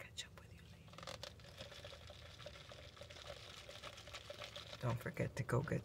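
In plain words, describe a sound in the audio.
A plastic cup crinkles in a hand.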